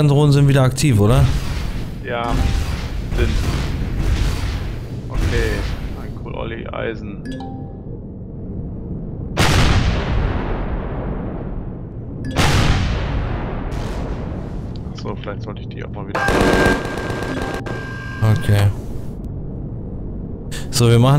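A spacecraft engine hums and roars.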